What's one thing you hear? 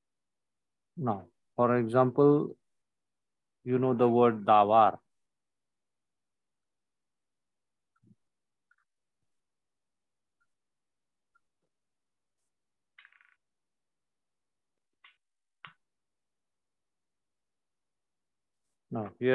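A man speaks over an online call.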